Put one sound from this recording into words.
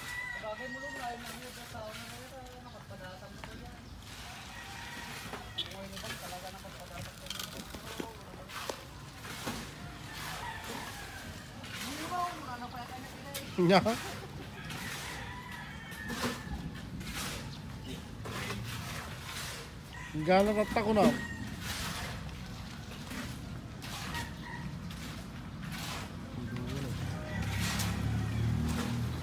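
Tools scrape and clank on rubble.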